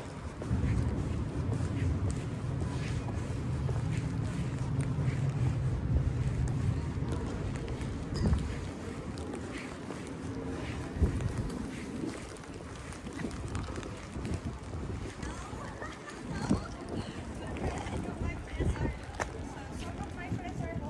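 Footsteps tap on brick pavement.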